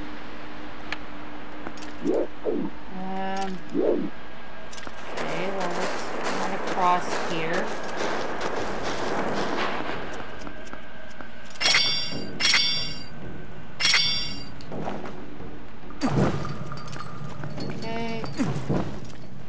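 Footsteps patter on a stone floor.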